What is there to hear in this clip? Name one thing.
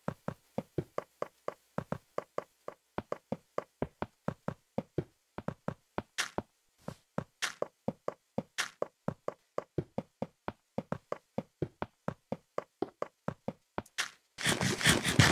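Quick footsteps crunch steadily on gravel.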